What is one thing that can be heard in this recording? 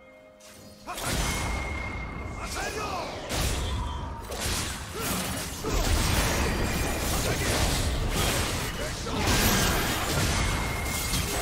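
Magical blasts and strikes crash and whoosh in a rapid, chaotic battle.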